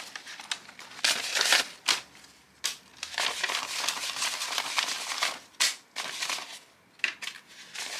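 Banknotes are laid down on a plastic tray.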